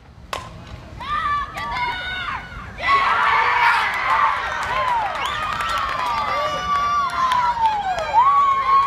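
A crowd of women cheers and shouts with excitement outdoors.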